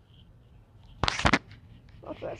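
A shovel strikes a rock with a sharp knock.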